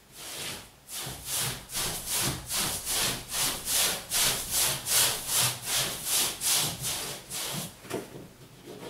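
A paste brush swishes across a wall in rapid back-and-forth strokes.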